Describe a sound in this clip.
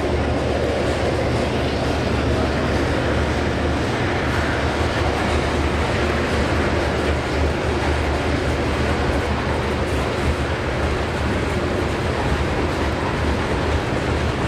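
Train wheels clatter and squeal over the track joints.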